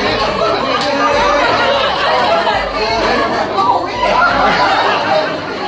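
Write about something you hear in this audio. Young women laugh loudly nearby.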